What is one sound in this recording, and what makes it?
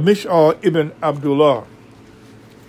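A middle-aged man speaks up close, then falls silent.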